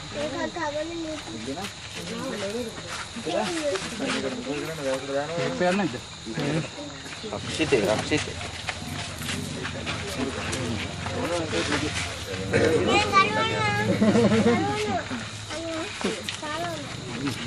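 Several men talk with one another close by.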